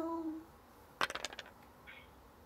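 Dice clatter as they roll onto a board.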